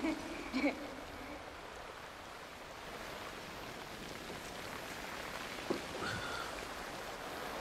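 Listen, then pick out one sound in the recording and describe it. A young man speaks briefly and quietly into a close microphone.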